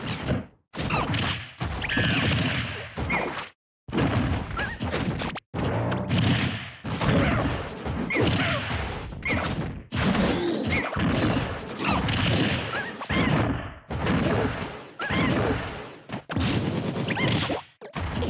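Punches and kicks land with sharp thuds and whooshes.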